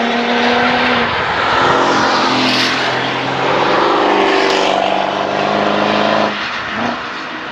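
A sports car engine shifts gears, its revs dropping and climbing again.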